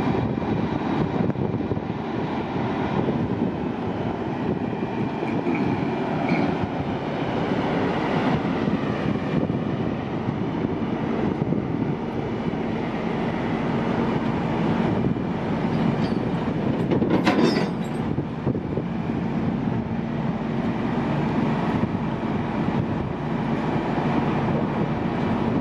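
A large diesel engine idles with a steady rumble.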